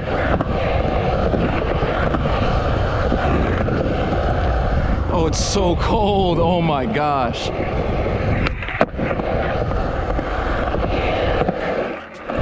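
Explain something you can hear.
Skateboard wheels roll and rumble over a concrete bowl.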